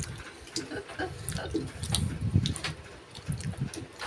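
An elderly woman chews noisily.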